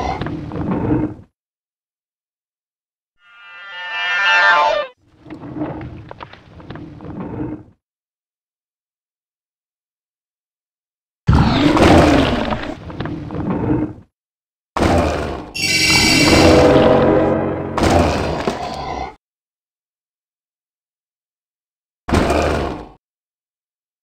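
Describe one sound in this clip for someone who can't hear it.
Magic spells whoosh and crackle in short bursts during a fight.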